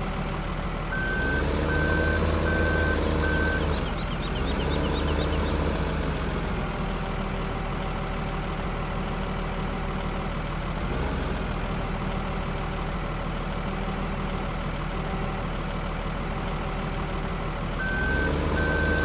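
A loader's reversing alarm beeps in even pulses.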